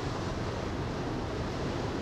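Waves splash against a ship's hull.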